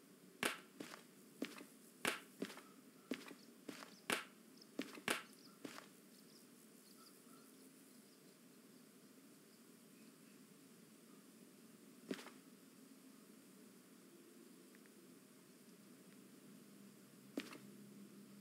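Paper cards tap softly as they are laid down on a table.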